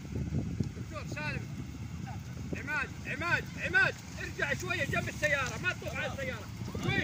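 Men shout and cheer excitedly outdoors.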